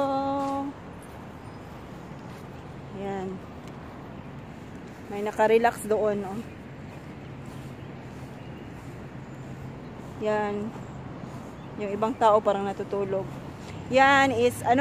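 A woman speaks close by in short, calm phrases.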